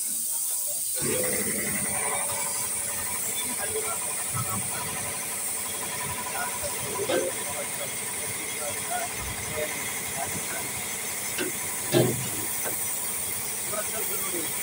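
An air-powered spray gun hisses as it sprays paint.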